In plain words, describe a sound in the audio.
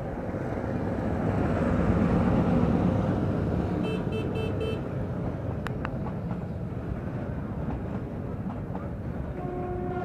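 Motorbike engines idle nearby.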